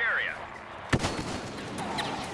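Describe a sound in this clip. Blaster shots fire in sharp bursts.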